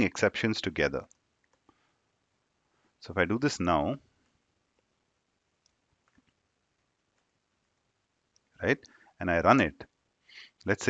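A young man speaks calmly and close to a microphone, in short bursts with pauses.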